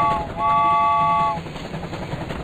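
A toy train whistle toots.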